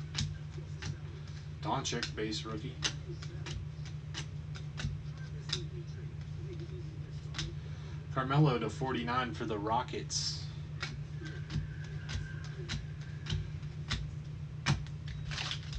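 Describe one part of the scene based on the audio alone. Trading cards slide and flick against each other in quick clicks.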